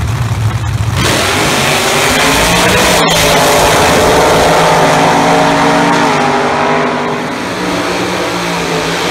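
Race car engines roar and rise in pitch as the cars launch and speed away, then fade.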